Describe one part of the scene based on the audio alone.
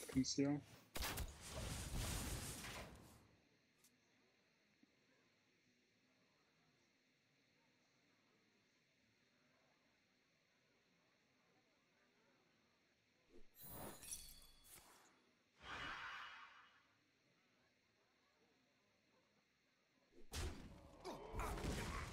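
Game sound effects whoosh and chime as cards are played.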